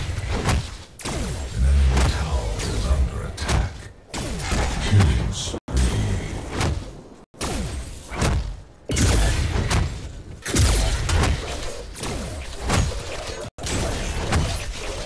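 Heavy blows and bursts of energy crash repeatedly in a fight.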